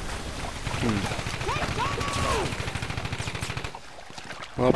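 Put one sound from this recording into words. Water churns and splashes as soldiers wade through the surf.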